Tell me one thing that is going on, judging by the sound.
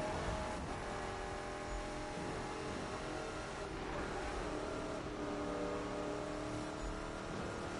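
A car engine roars at high speed.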